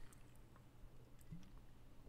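A man takes a sip from a bottle.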